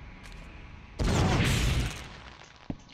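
A fiery explosion roars loudly.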